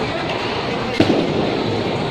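A bowling ball thuds onto a wooden lane.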